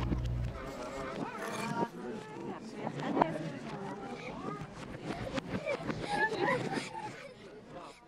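A group of adults and children chat and laugh.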